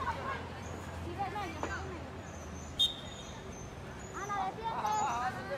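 Young women shout to each other across an outdoor pitch.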